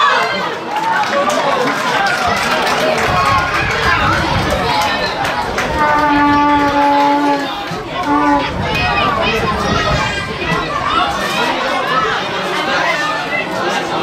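Children shout and call out across an open outdoor pitch.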